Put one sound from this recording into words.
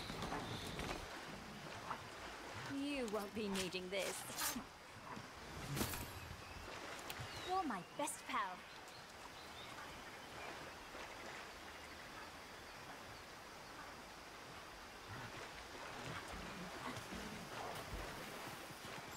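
Water splashes and churns as something wades through a shallow river.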